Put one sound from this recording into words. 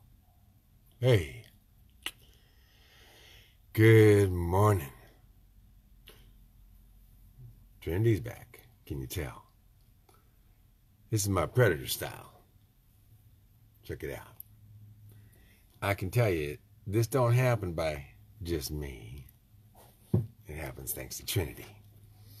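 An older man speaks with animation close to a microphone, in short bursts.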